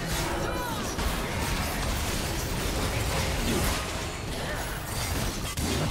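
Video game spells whoosh and crackle during a fight.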